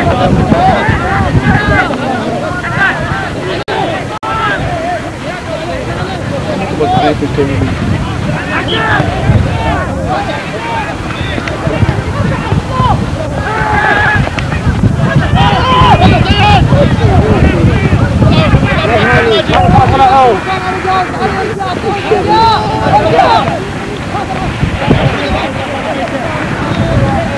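Children and young people shout and call to each other in the distance.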